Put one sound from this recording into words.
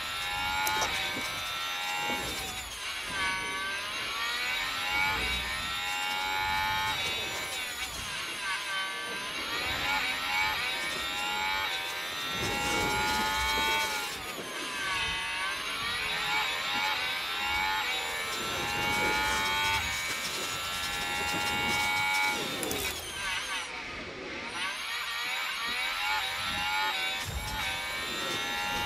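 A racing car engine screams at high revs, rising and falling as the gears shift.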